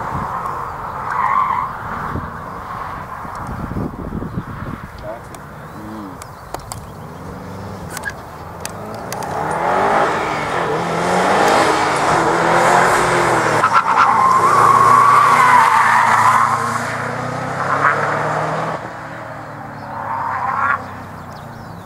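Tyres squeal on tarmac as a car slides through turns.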